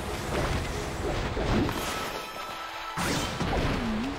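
Blades slash sharply in a fight.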